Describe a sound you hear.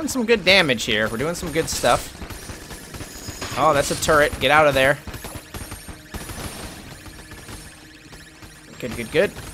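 Video game shots pop rapidly.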